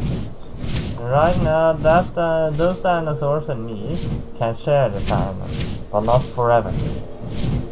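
A young man speaks animatedly into a nearby microphone.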